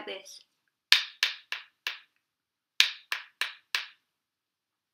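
Sticks tap together sharply in short bursts of four.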